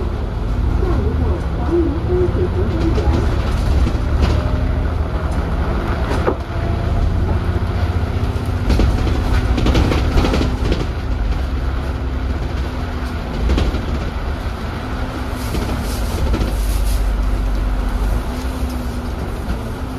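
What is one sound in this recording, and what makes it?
Tyres hiss on the wet road.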